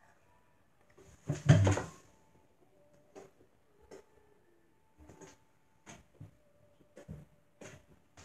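Thumps and rustles sound close by.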